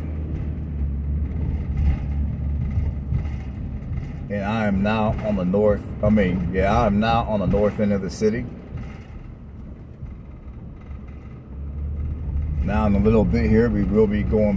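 A car engine hums steadily with low road rumble.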